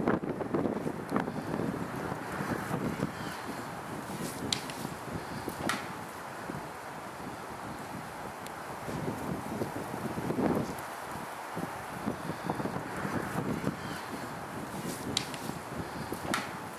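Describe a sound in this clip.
An elk thrashes its antlers through dry brush, scraping and snapping twigs.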